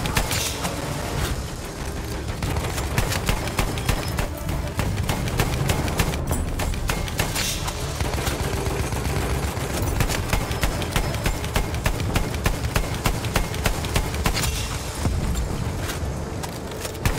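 A heavy machine gun fires in rapid bursts.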